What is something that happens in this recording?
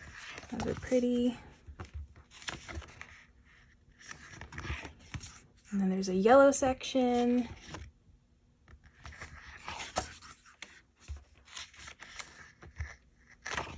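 Stiff paper pages rustle and flip over.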